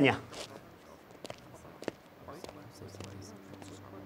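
Footsteps walk away on a hard floor.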